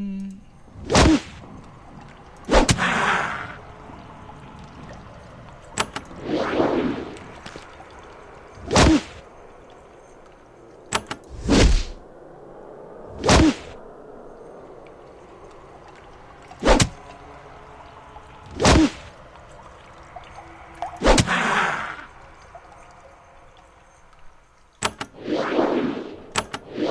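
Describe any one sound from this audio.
Sharp weapon blows strike again and again, each followed by a brief whooshing swell.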